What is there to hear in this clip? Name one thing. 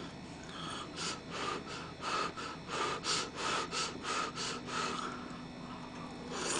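A young person chews food noisily and smacks their lips close up.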